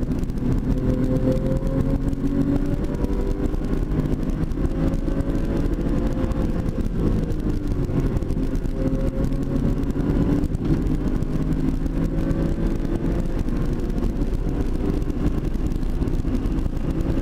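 A car engine roars loudly from inside the cabin, rising and falling in pitch as the car speeds up and slows down.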